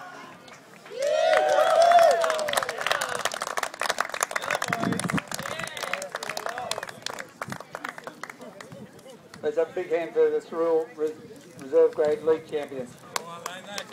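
A crowd of men cheer and shout outdoors.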